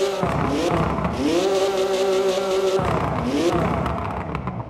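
A sports car engine revs loudly while standing still.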